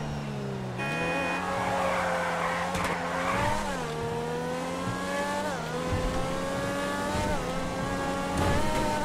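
A race car engine roars, revving up and shifting through gears.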